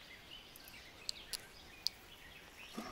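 A fishing reel clicks as the line is wound in.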